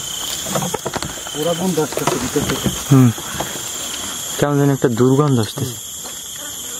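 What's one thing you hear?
A young man speaks in a low, tense voice close by.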